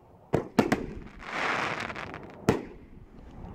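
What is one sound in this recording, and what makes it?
Firework sparks crackle and hiss overhead.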